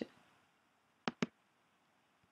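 A computer mouse clicks.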